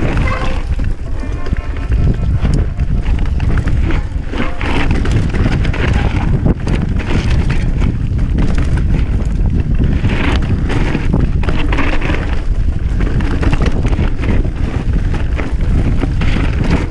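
Bicycle tyres crunch and rattle over a dry dirt trail.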